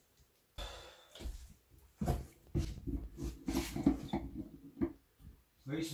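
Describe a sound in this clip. Dishes clatter and water splashes in a sink.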